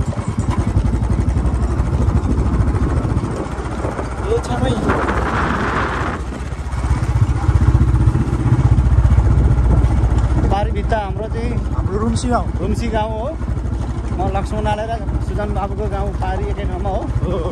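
A motorcycle engine rumbles steadily while riding along.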